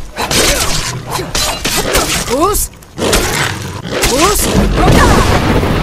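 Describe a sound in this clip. A beast snarls and growls fiercely.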